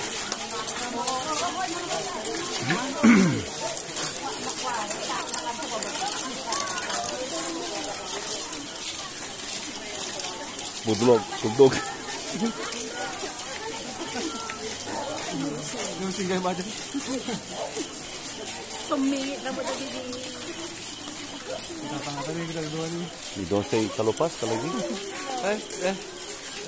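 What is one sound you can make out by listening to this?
A crowd of men and women murmurs and talks nearby.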